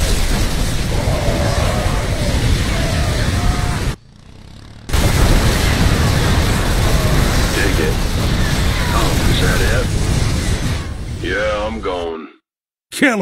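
Gunfire and explosions crackle from a battle between game units.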